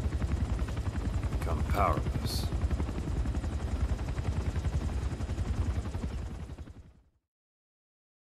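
A helicopter rotor thumps rapidly and steadily, then fades away.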